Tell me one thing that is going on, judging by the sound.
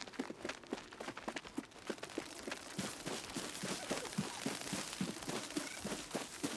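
Footsteps patter quickly over soft ground.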